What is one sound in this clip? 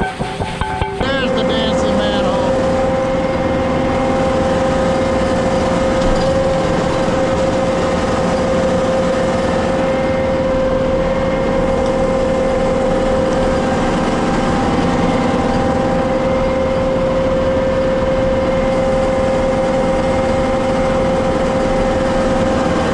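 A truck engine hums steadily close by.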